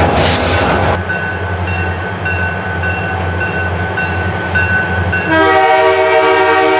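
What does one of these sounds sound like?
A diesel locomotive engine drones as it approaches.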